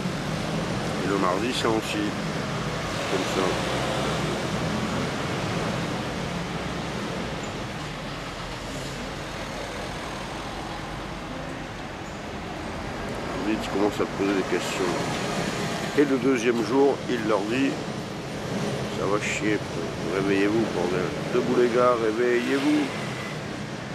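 An older man speaks close to the microphone in a relaxed voice.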